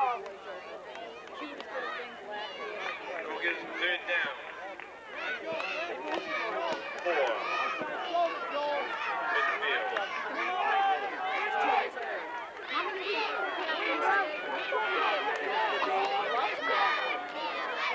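Young children shout and cheer nearby.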